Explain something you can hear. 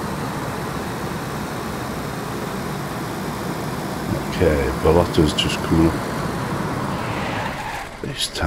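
Car tyres roll over a paved road.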